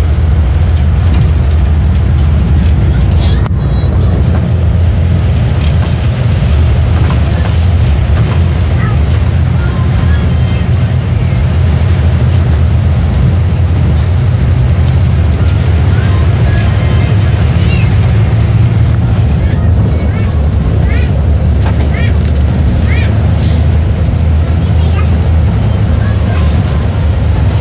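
A bus horn sounds in short melodic toots.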